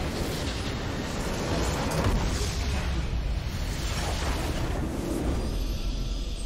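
A large crystal shatters in a booming, rumbling explosion.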